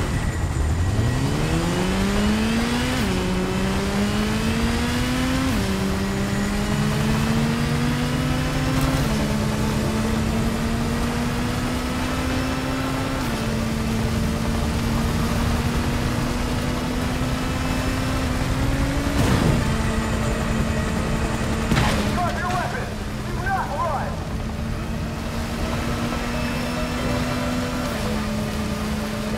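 A motorcycle engine roars, revving up and shifting through gears as it speeds along.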